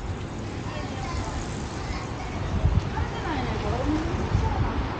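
A scooter rides past close by.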